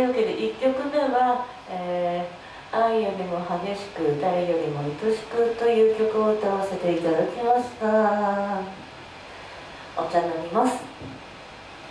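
A young woman sings into a microphone in a large echoing room.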